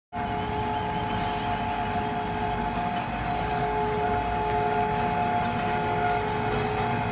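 Industrial machines hum and whir steadily in a large echoing hall.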